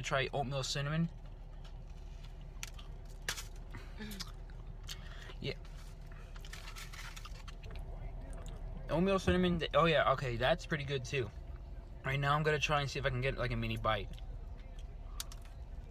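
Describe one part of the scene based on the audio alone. A young man chews and smacks his lips while eating.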